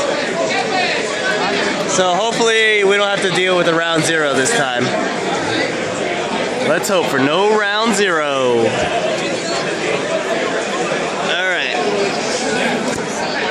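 A crowd of people chatter throughout a large room.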